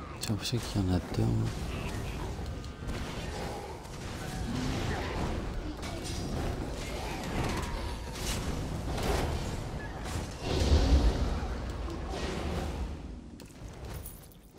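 Magic blasts burst and weapons clash in a fierce fight.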